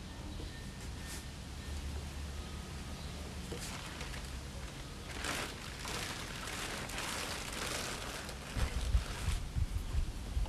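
Footsteps thump on a wooden deck.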